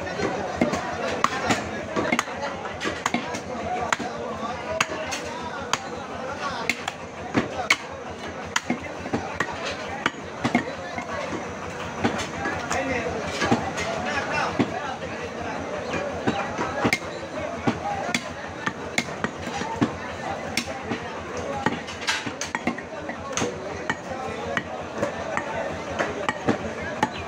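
A cleaver chops meat on a wooden block with sharp, repeated thuds.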